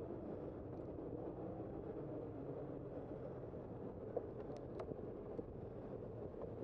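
A car engine hums steadily while driving along a city street.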